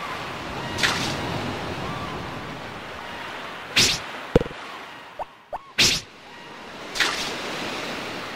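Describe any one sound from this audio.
A fishing line swishes through the air as it is cast.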